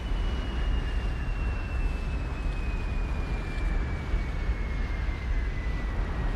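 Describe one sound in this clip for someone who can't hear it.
Wind rushes loudly and steadily past during a fast fall.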